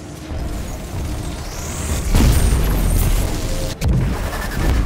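A portal hums and whooshes loudly as it opens.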